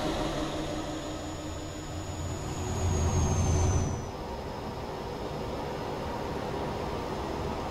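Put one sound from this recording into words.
An articulated truck drives past on a road.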